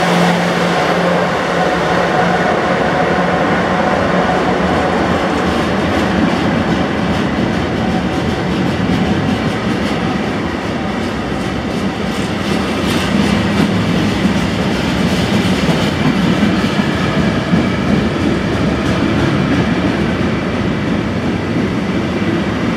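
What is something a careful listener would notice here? A long freight train's wagons rumble and clatter steadily over the rails.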